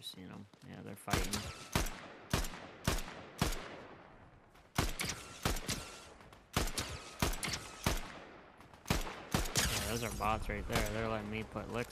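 Rapid gunshots crack one after another with echoing tails.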